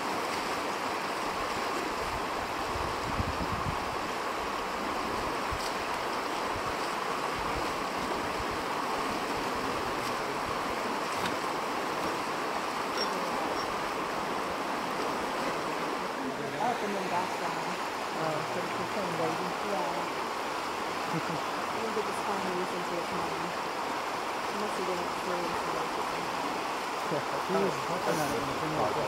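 A river rushes and gurgles steadily over rocks.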